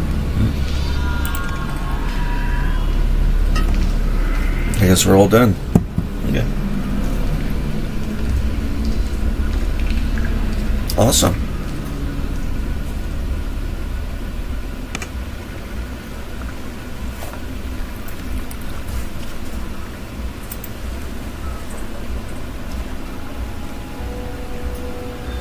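A man talks casually into a nearby microphone.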